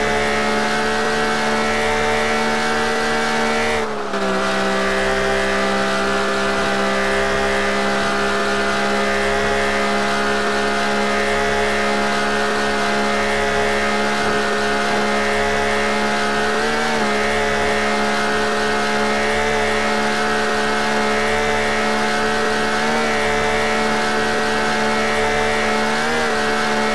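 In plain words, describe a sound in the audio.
A car engine hums steadily at high speed, dipping briefly as the gear shifts.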